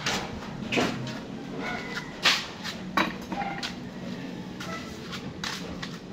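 Sandals scuff and tap on a concrete floor nearby.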